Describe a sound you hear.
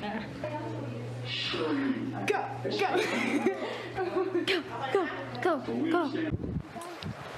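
Young women laugh and talk with animation close by.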